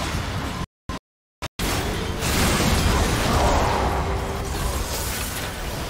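Video game spells and attacks crash and burst in a busy battle.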